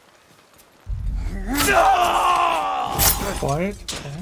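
A blade stabs with a sharp, heavy thud.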